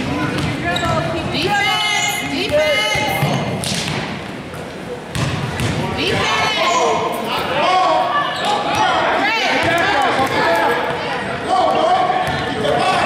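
Spectators talk and cheer in an echoing gym.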